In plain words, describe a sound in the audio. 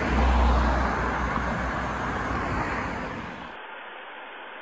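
Traffic hums along a wide road outdoors.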